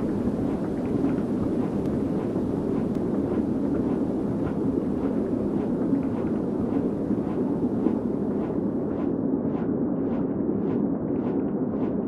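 Large wings flap in a steady rhythm.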